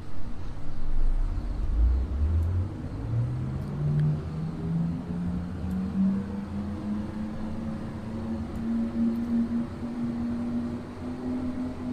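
A train rumbles low along the track.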